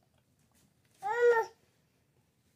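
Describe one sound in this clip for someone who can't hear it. A toddler squeals briefly close by.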